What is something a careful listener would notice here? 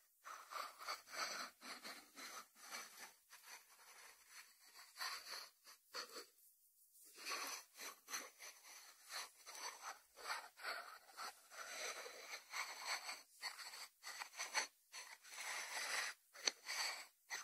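A ceramic dish slides and scrapes on a wooden board.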